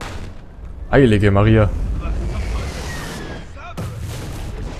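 A heavy explosion booms and rumbles.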